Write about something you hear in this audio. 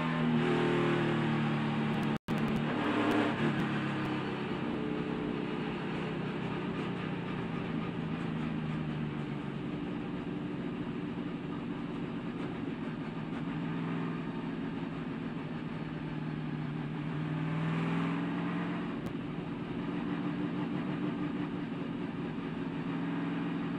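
A race car engine roars loudly up close, with its pitch rising and falling.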